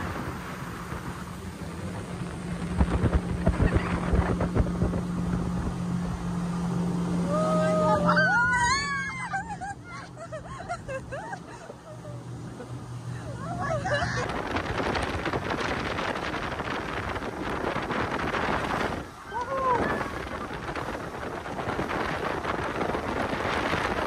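Water splashes and hisses against a moving boat's hull.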